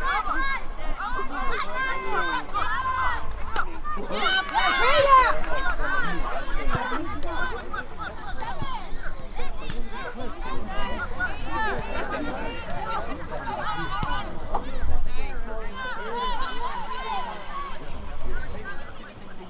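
Young women shout and call to one another across an open field outdoors.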